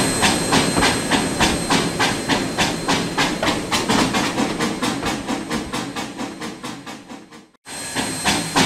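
Freight wagons rumble past close by, wheels clacking rhythmically over the rail joints.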